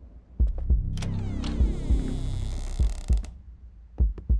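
A door creaks loudly as it swings open.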